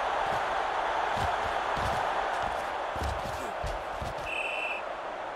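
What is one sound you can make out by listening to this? Football players thud as they collide in a tackle.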